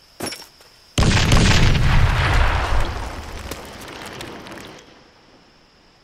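An explosion booms loudly and rumbles as it fades away.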